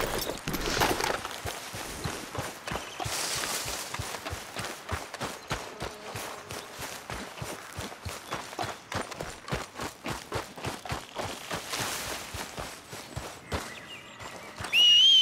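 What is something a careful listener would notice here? Footsteps crunch quickly over grass and gravel.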